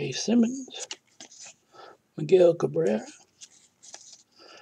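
Trading cards are handled and slide against each other.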